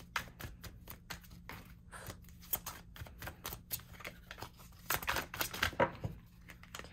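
Playing cards riffle and flap quickly as they are shuffled by hand, close up.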